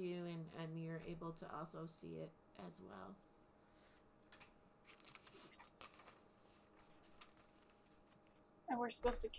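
A woman talks calmly over an online call.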